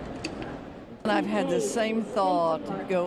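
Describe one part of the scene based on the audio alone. An older woman speaks with animation into a nearby microphone.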